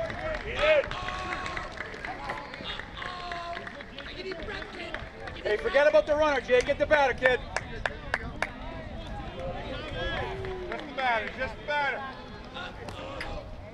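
A crowd of spectators calls out and cheers outdoors.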